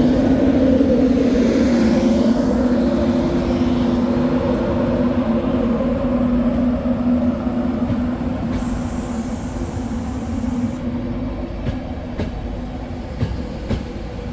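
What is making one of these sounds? A train pulls away slowly along the track.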